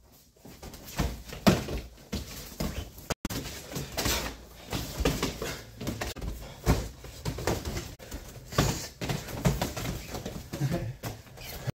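Blows land with dull thumps on padded gear.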